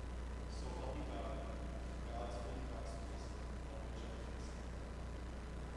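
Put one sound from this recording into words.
A man speaks quietly in an echoing hall.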